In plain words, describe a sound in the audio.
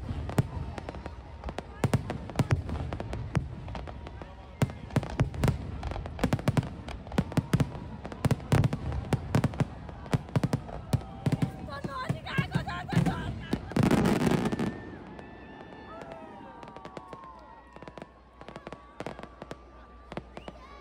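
Fireworks bang and crackle loudly, close by and echoing.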